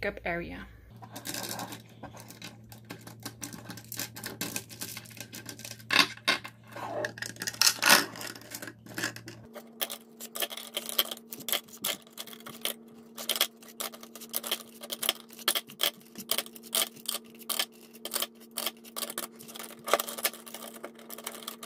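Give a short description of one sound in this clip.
Plastic pens clatter and click together as they are handled.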